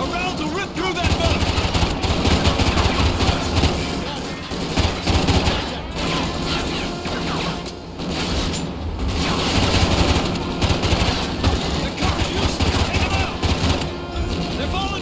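Automatic rifle fire crackles in rapid, loud bursts.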